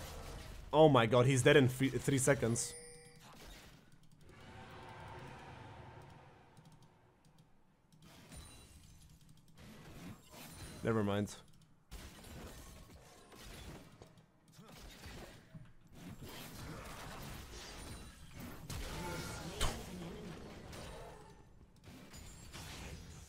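Game sound effects of spells and blows clash and whoosh.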